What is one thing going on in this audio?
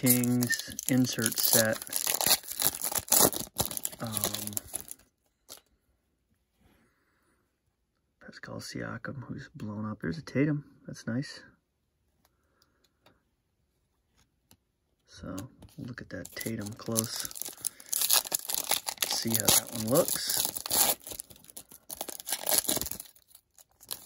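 Foil wrappers crinkle and tear.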